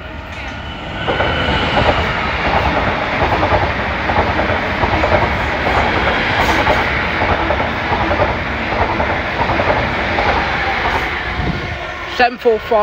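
An electric train rushes past close by with a loud roar.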